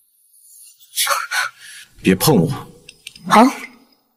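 A young man speaks in reply.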